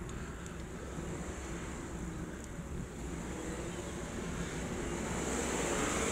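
Wind rushes steadily past and grows louder toward the end.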